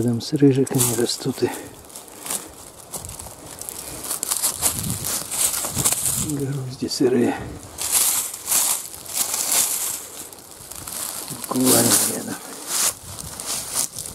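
Dry pine needles and leaves crackle and crunch underfoot.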